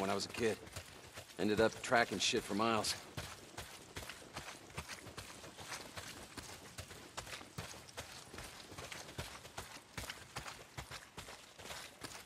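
Footsteps run on dirt and wooden planks.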